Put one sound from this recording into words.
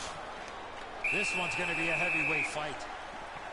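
A referee's whistle blows once, long and shrill.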